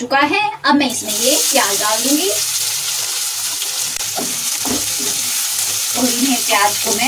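Oil sizzles loudly as chopped onions drop into a hot pan.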